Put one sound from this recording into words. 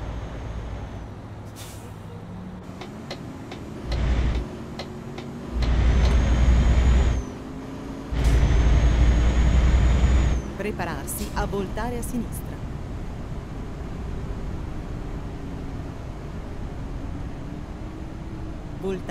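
A truck engine hums steadily and rises and falls in pitch.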